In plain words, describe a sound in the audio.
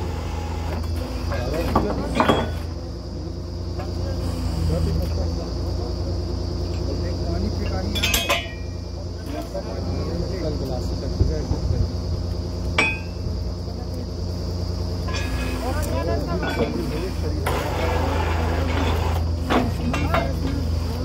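Several men talk loudly over the engine nearby.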